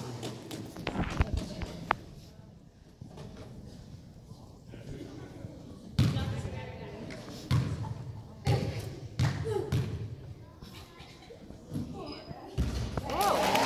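Sneakers squeak on a hardwood gym floor.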